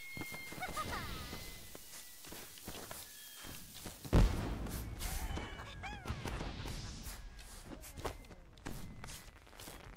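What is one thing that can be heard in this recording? Fireworks burst with sharp bangs and crackles.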